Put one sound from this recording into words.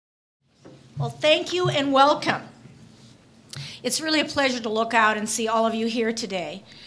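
A woman speaks calmly into a microphone in a large room.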